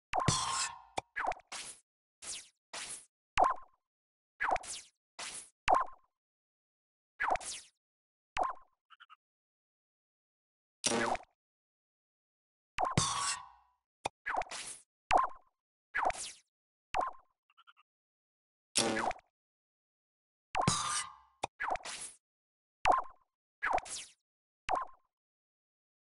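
Short electronic blips and swooshes of a game's menu sound again and again.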